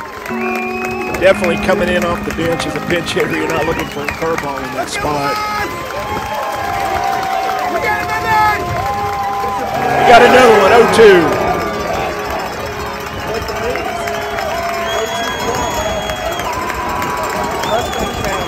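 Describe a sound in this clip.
A crowd of spectators chatters and calls out close by, outdoors.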